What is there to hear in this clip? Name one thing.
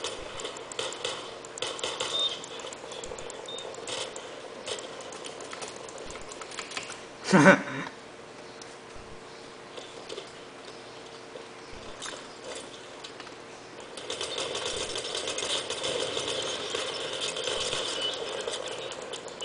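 Rapid gunfire crackles from a video game through small speakers.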